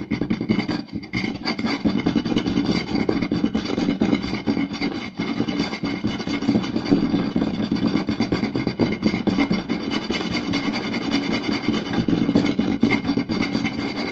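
Fingers tap and drum on a wooden board.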